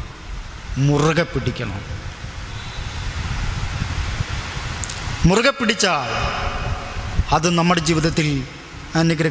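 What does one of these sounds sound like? A young man speaks slowly and calmly into a microphone, with pauses.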